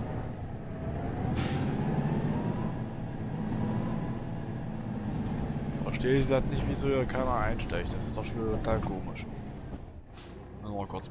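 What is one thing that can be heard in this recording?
A bus engine rumbles steadily as the bus drives.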